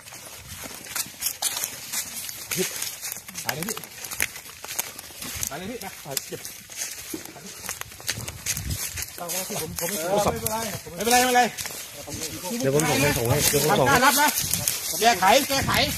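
Footsteps shuffle and scuff on dry ground.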